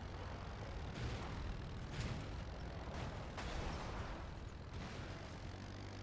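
A vehicle crashes and scrapes against rock.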